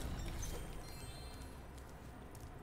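A bright video game chime tinkles as a gem is picked up.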